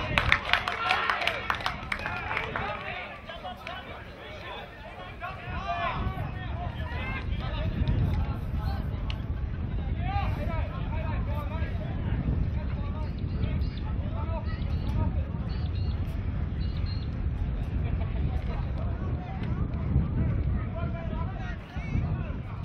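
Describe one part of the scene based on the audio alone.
Young men call out to each other outdoors.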